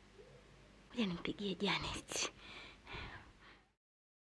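A young woman speaks softly and cheerfully nearby.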